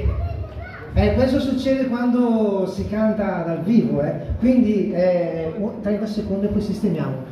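A man speaks with animation into a microphone over loudspeakers.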